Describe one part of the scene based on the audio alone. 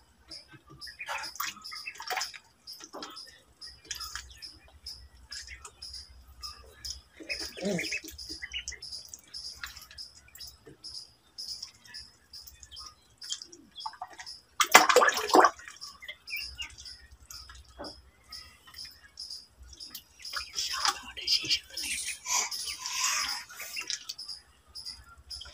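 Water splashes and laps as ducklings paddle.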